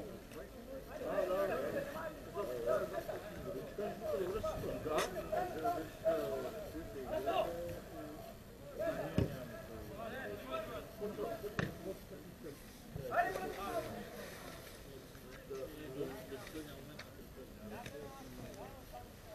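Young men chat nearby outdoors.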